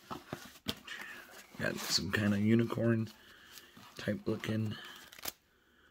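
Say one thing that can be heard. Plastic packaging crinkles as it is handled.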